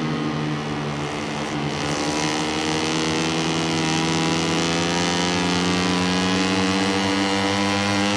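A racing motorcycle engine roars and climbs in pitch as it accelerates.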